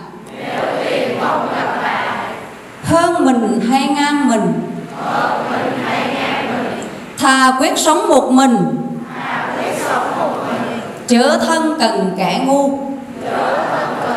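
A large group of children chants together in unison.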